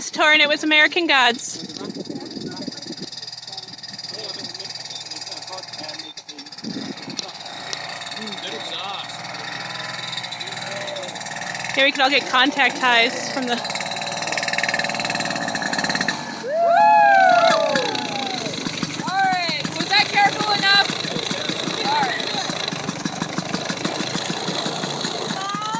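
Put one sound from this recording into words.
A snowmobile engine drones as it approaches across open snow.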